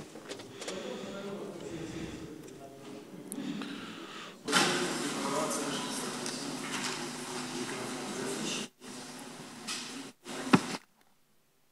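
An elderly man speaks calmly into a microphone in a large hall.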